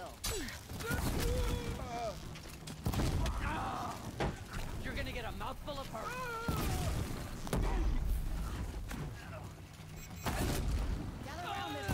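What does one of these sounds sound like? Explosions boom with loud deep bursts.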